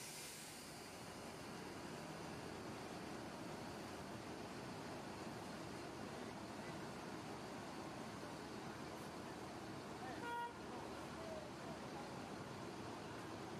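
A bus pulls away and drives slowly past, its engine rumbling.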